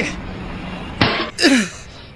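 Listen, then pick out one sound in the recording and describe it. A stone strikes a man's head with a sharp knock.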